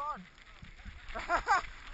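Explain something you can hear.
A young man laughs briefly.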